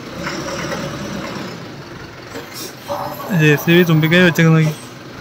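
A diesel engine rumbles nearby.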